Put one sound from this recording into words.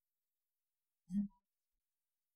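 A magical portal hums with a brief shimmering sound.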